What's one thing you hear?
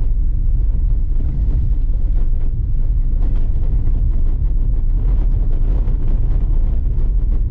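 Tyres crunch and rattle over a dirt road.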